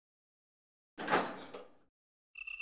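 A metal door clanks open.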